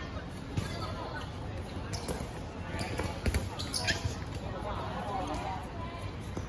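Basketballs bounce on an outdoor court.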